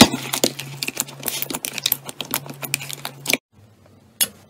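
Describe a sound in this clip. Hands squish and knead soft slime with wet sticky sounds.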